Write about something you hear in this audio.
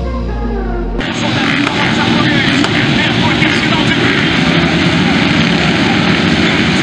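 Many motorcycle engines rev loudly together outdoors.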